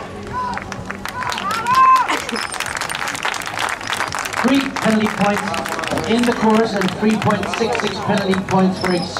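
A crowd claps and cheers outdoors.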